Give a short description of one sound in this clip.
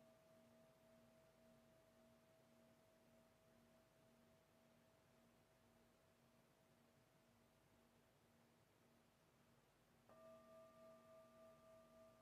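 A singing bowl rings with a steady, pulsing hum.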